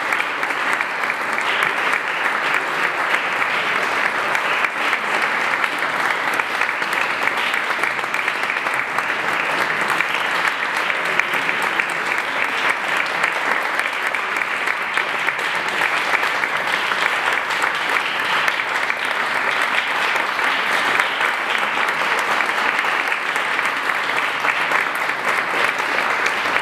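An audience applauds steadily in an echoing hall.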